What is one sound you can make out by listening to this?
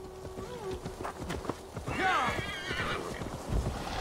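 A horse's hooves thud on soft ground.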